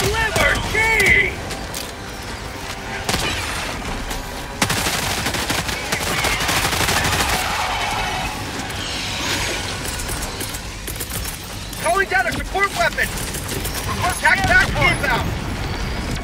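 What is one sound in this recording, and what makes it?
Large creatures screech and shriek.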